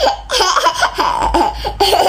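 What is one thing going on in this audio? A young child giggles happily.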